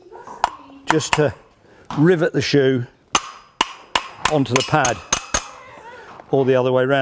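A hammer taps on metal.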